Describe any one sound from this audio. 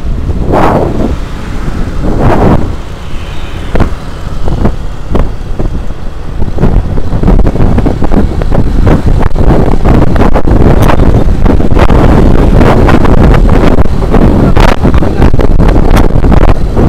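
Wind rumbles and buffets loudly against a moving motorbike.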